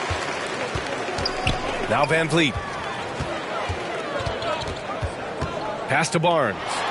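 A basketball bounces steadily on a hardwood court.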